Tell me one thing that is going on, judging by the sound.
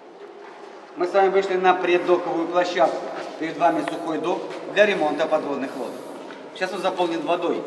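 A middle-aged man speaks calmly close by, in an echoing hall.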